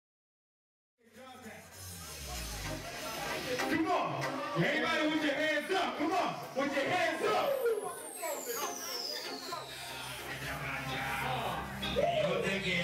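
A young man raps loudly into a microphone.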